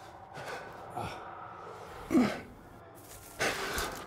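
A man groans in pain.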